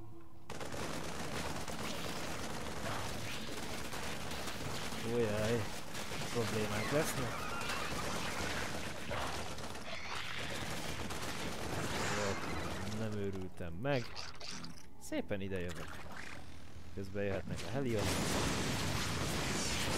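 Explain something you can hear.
Weapons fire and blasts crackle in a video game battle.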